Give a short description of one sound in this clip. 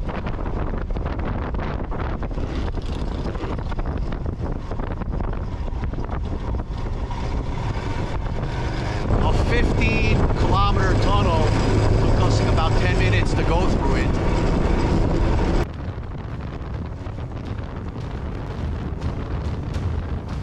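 A motorcycle engine hums steadily as it rides along.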